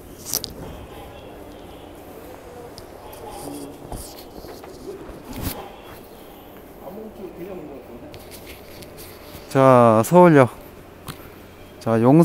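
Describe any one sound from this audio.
Footsteps walk along a hard floor.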